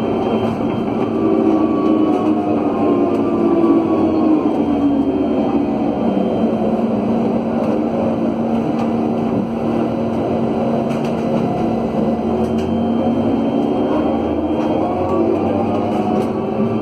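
Traffic hums steadily all around.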